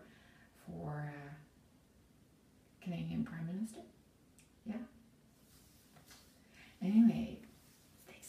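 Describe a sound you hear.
An older woman speaks calmly and close by, in short phrases with pauses.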